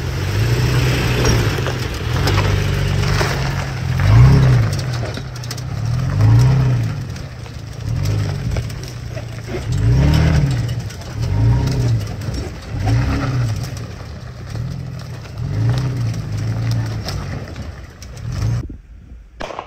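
Tyres crunch slowly over rough dirt and rocks.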